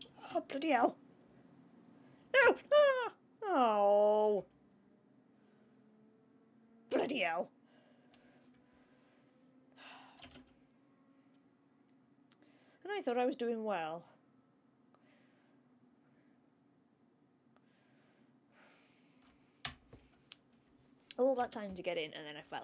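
A young woman talks with animation close to a microphone, in short bursts.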